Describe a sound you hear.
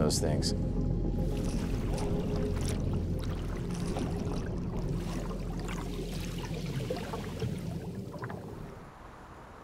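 Bubbles rise and gurgle underwater.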